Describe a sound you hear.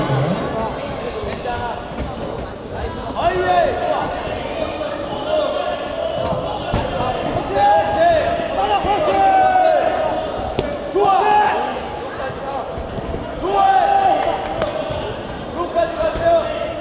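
Gloved punches and kicks thud against the fighters.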